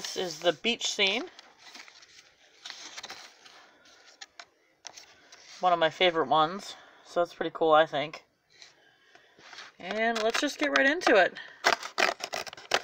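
A cardboard toy box rustles and taps as it is handled.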